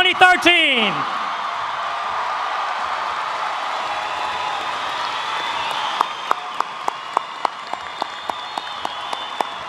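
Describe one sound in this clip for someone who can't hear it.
A large crowd applauds in an echoing hall.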